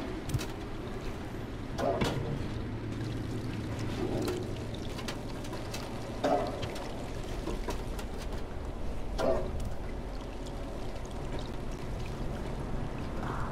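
A cat's paws patter softly on a metal roof.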